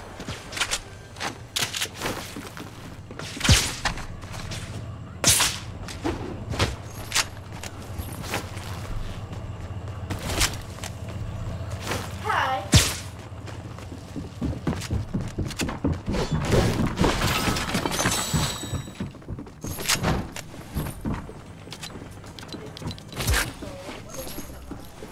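Footsteps thud quickly on wooden and hard floors.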